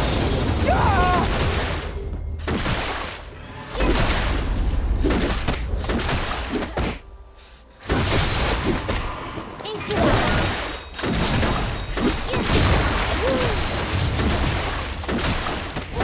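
Magic spells and weapon strikes clash in a battle game.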